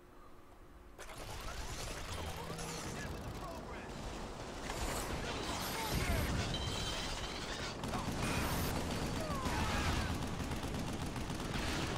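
Heavy machine gun fire rattles in rapid bursts.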